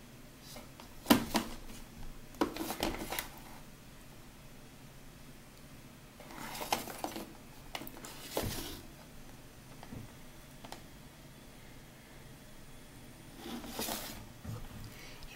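Plastic cases clack and rustle as they are handled close by.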